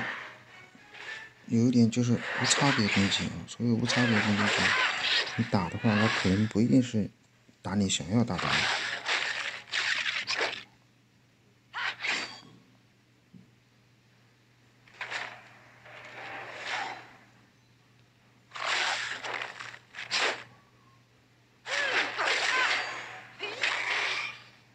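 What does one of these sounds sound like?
Magic blasts and sword slashes whoosh and crash in short bursts.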